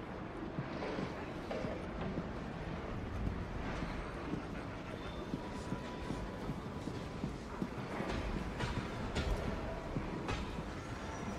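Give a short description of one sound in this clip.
Footsteps thud quickly on wooden stairs and floorboards.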